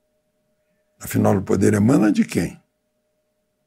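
An elderly man speaks calmly and clearly into a close microphone.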